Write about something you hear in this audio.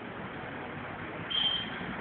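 A motorcycle engine rumbles as it rides past.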